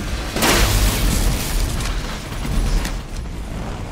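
Gunshots blast loudly with a heavy rumble.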